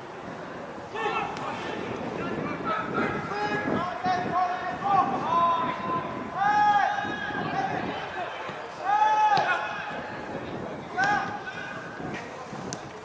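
Football players shout to one another across an open field outdoors.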